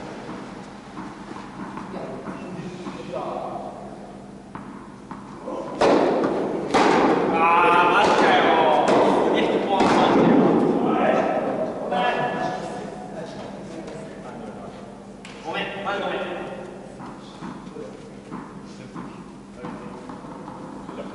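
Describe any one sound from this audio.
Tennis balls are struck with rackets, echoing in a large hall.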